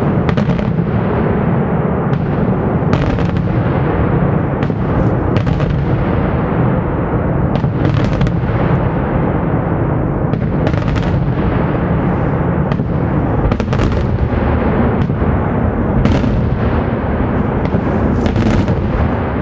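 Fireworks crackle and bang rapidly overhead.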